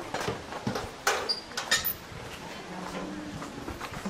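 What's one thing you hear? Metal door panels creak and rattle as they swing open.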